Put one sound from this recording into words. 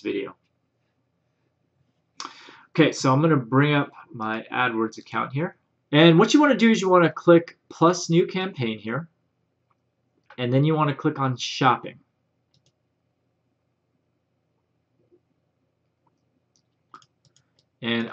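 A man talks calmly and steadily into a close microphone.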